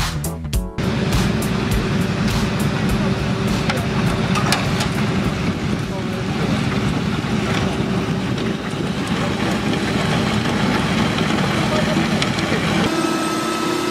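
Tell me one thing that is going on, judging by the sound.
The engine of a road marking machine hums steadily.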